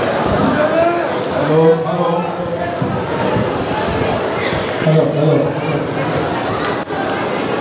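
A large crowd of men chants loudly together nearby.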